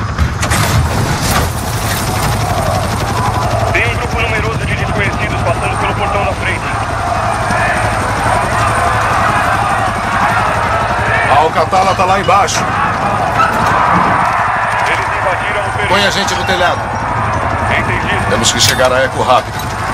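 A helicopter's rotor thumps and drones steadily close by.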